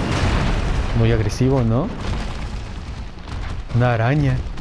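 A large creature lets out a loud, wavering cry.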